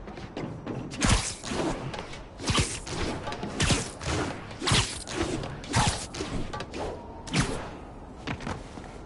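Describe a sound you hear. Quick footsteps thud on a wall.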